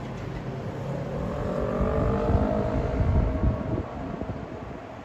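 A vehicle passes with a rising engine whine.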